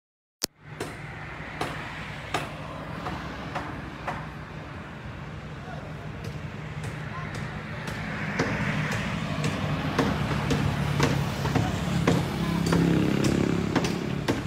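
Hammer blows ring out sharply at a steady pace from a distance outdoors.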